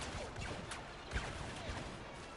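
An explosion bursts with a roaring blast.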